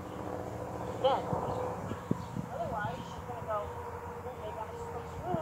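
A woman talks calmly outdoors at a distance.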